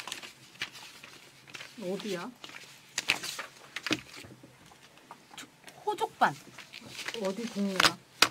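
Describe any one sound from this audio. Paper sheets rustle and flap.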